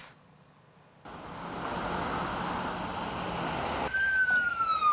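A fire roars steadily.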